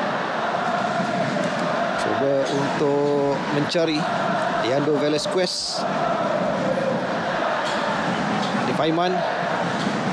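A large crowd roars and chants steadily in an open stadium.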